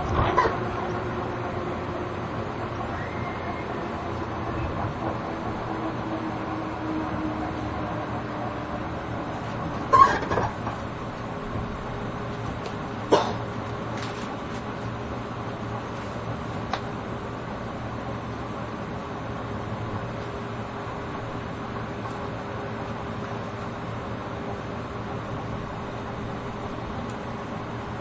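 An electric train idles with a low, steady hum.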